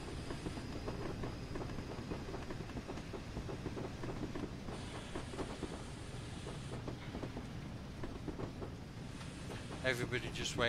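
A steam locomotive rumbles and clanks along the rails.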